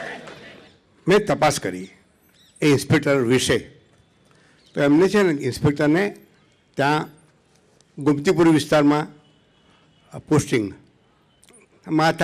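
An elderly man speaks calmly into a microphone over loudspeakers.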